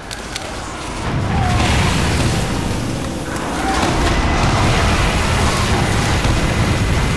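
A heavy machine gun fires in a rapid, roaring stream.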